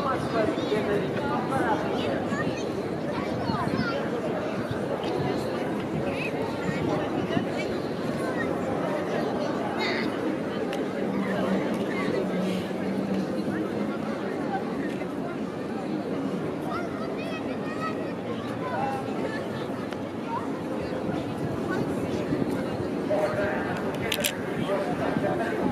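A crowd chatters and murmurs all around outdoors.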